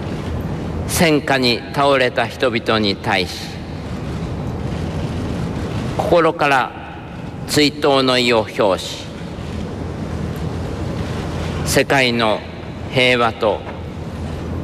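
An elderly man speaks slowly and solemnly through a microphone, with long pauses.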